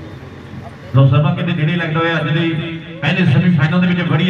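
A man commentates loudly and excitedly through a loudspeaker.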